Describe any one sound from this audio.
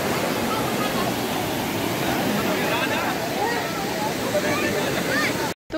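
People wade and splash through shallow water.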